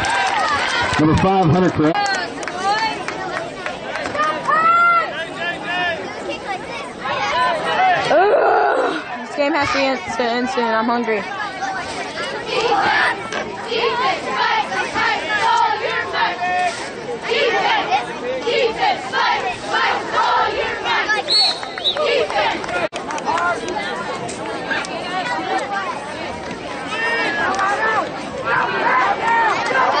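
A crowd of spectators chatters and calls out nearby, outdoors.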